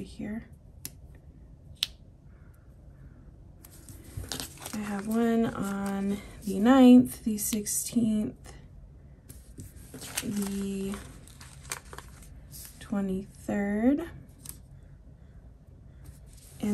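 Paper rustles softly as stickers are peeled and pressed onto a page.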